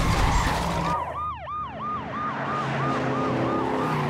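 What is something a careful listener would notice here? A car engine roars past.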